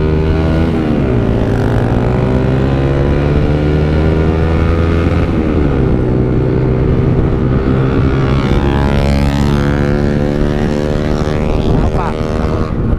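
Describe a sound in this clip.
A motorcycle engine drones loudly up close, its pitch rising and falling with gear changes.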